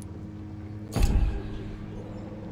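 A deep whoosh sounds once as a game menu switches.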